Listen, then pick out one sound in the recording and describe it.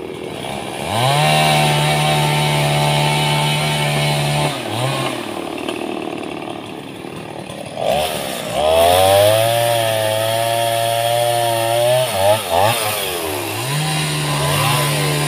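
A small two-stroke chainsaw idles and revs between cuts.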